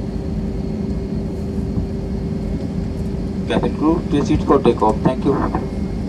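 Jet engines roar steadily from inside an aircraft cabin.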